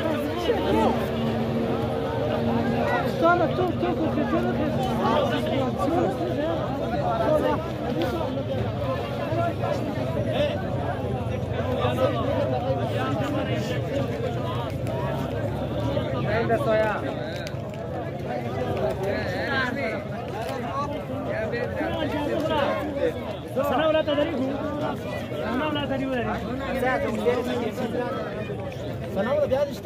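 A large crowd of men talks and calls out loudly nearby, outdoors.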